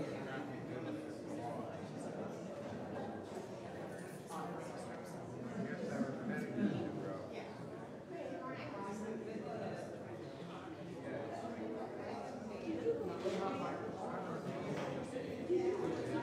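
A crowd of adults chats in the distance in a large room.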